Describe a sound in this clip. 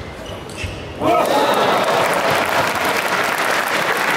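A crowd cheers and applauds loudly in a large echoing hall.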